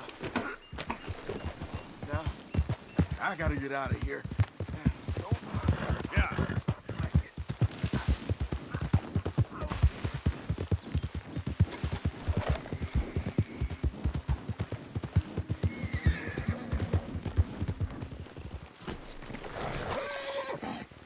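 A horse gallops, its hooves thudding quickly and steadily.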